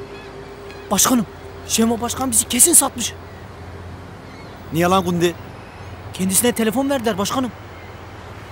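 A young man speaks urgently close by.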